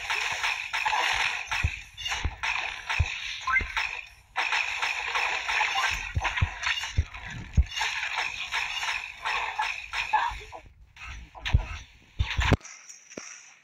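A video game gun fires rapid shots.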